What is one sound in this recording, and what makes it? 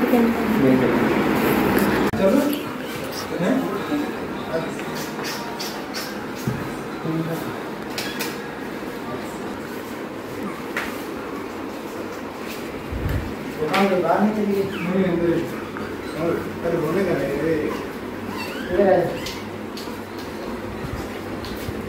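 Flip-flops slap on a hard floor.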